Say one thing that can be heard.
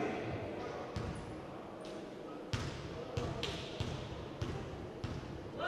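A basketball bounces repeatedly on a wooden floor in an echoing hall.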